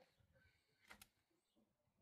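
A switch clicks on an electrical box.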